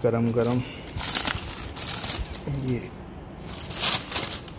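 Aluminium foil crinkles and rustles as it is peeled back.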